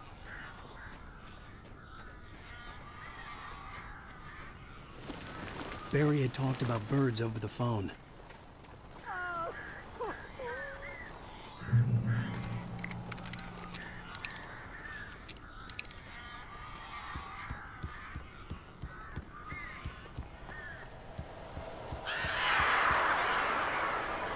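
Footsteps crunch on gravel and thud on wooden steps.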